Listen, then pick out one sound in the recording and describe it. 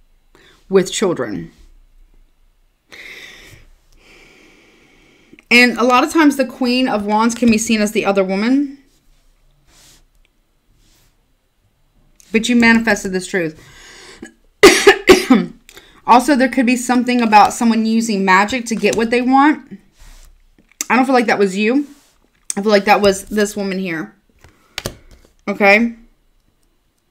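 A woman speaks calmly into a nearby microphone, in short bursts with pauses.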